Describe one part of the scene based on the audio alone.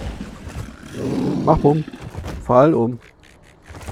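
A large beast snarls and growls.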